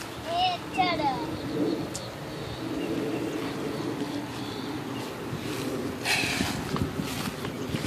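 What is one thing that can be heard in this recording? A small bicycle's tyres roll along a paved path nearby.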